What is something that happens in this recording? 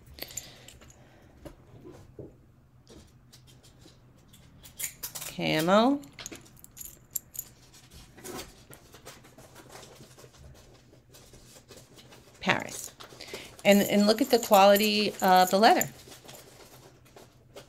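Metal chain links clink softly in a hand.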